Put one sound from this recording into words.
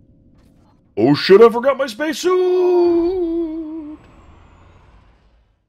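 A sliding door whooshes open.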